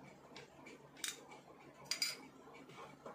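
A spoon clinks against a glass jar.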